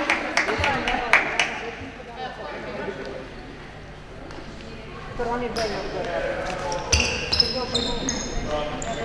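Sneakers squeak on a hard court in a large echoing hall.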